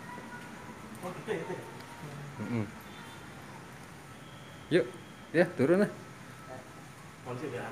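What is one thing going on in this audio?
A young man talks in short bursts close by.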